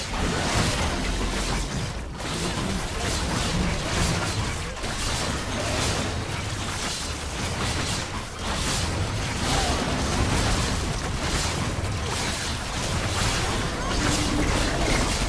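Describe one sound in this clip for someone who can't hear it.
Magic blasts and clashing battle effects crackle and boom without pause.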